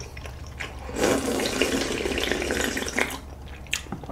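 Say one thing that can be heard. A young man slurps soup from a bowl.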